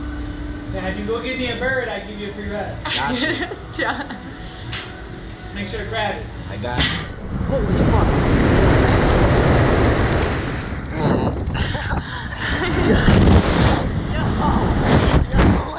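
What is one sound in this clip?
A young woman laughs and shrieks close by.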